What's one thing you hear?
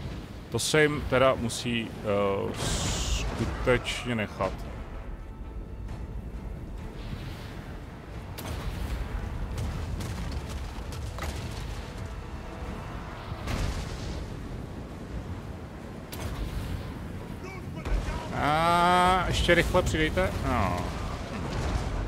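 Explosions boom across a battlefield.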